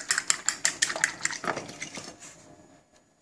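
A fork whisks eggs quickly, clicking against a plate.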